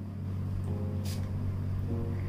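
A perfume bottle sprays with a short hiss.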